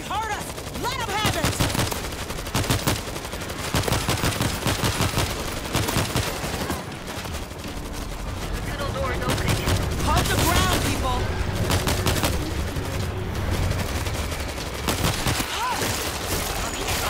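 Rapid gunfire cracks repeatedly.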